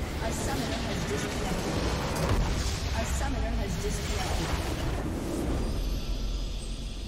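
A structure explodes and crumbles with a deep rumble.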